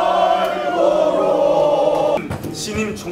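A crowd sings together in a large hall.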